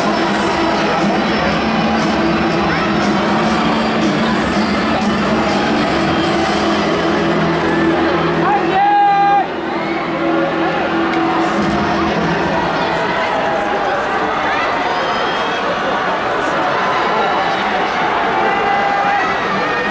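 A large stadium crowd cheers and chatters throughout, echoing widely.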